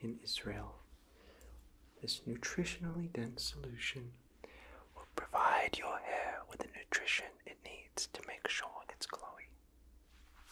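A young man whispers softly, close to the microphone.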